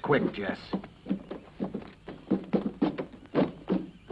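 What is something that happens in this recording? Boots thump on wooden steps.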